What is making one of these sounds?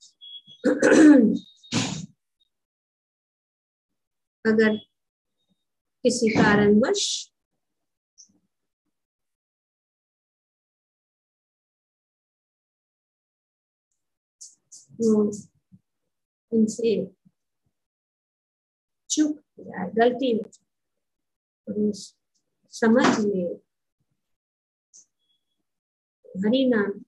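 An elderly woman speaks slowly and calmly, with long pauses, heard through an online call.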